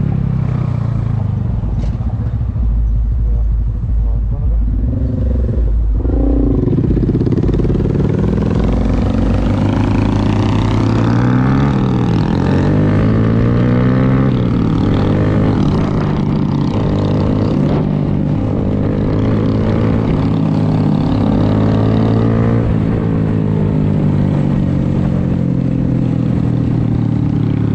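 A motorbike motor hums close by, its pitch rising and falling as it speeds up and slows down.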